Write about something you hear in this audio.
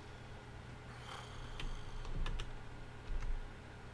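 A wooden lid creaks open.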